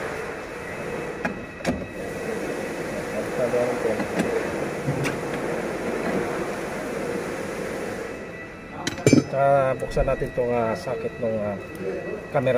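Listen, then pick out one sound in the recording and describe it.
Wires and plastic parts rustle and click against a car door panel.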